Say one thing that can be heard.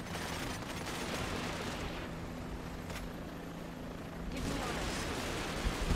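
Gunfire crackles in a small battle.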